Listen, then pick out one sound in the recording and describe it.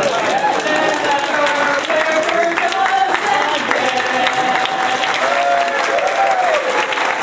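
Several women sing together loudly.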